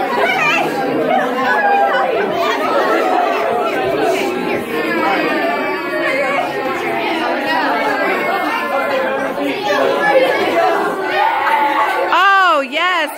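A group of young teenagers chatter and laugh excitedly nearby, in a room that echoes a little.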